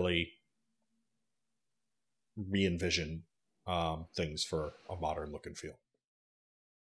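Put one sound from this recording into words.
A middle-aged man speaks calmly and clearly into a microphone, heard as over an online call.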